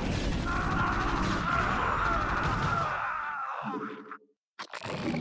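Laser blasts and explosions crackle in a video game battle.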